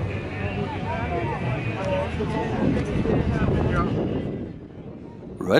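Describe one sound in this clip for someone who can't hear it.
Propeller engines idle with a steady low drone.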